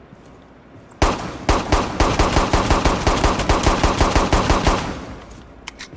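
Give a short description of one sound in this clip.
A pistol fires a rapid burst of loud shots.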